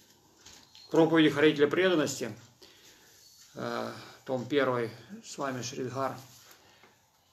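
A middle-aged man speaks calmly, close by, in short phrases.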